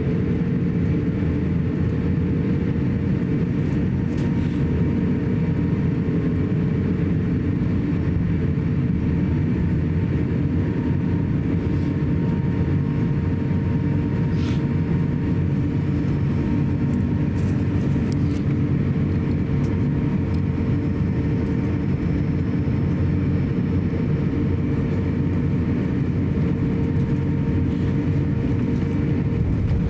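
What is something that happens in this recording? Jet engines hum steadily from inside an airliner cabin as it taxis.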